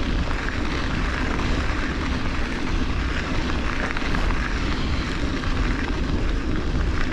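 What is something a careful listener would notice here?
Wind rumbles against the rider outdoors.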